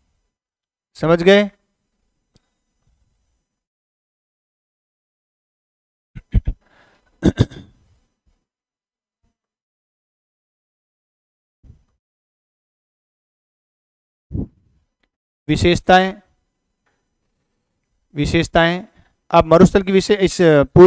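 A middle-aged man speaks calmly into a close microphone, in short bursts with long pauses.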